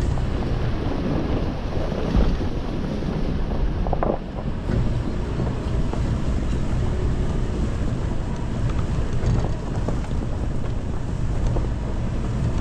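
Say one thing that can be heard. A vehicle engine rumbles steadily at low speed.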